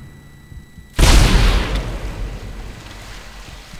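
A heavy gun fires a loud blast that rings out and slowly fades.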